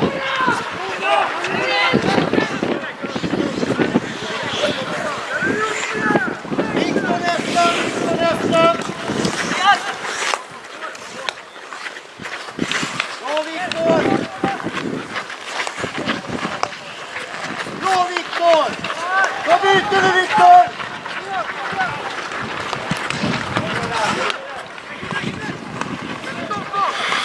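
Ice skates scrape and swish on ice.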